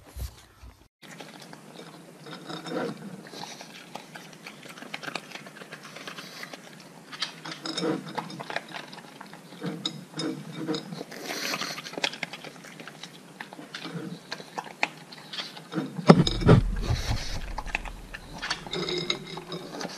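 A dog crunches and chomps dry food from a bowl close by.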